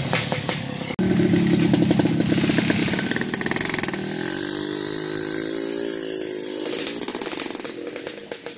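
A two-stroke motorcycle engine revs up close.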